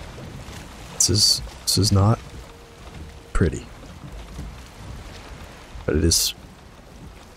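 Wooden planks knock into place with sharp thuds.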